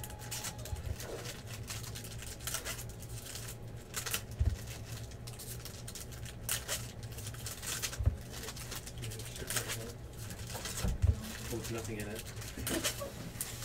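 Foil card wrappers crinkle and tear as they are ripped open.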